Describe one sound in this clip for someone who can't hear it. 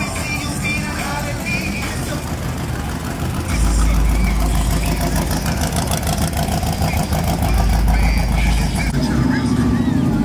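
An old truck engine rumbles as the truck rolls slowly past.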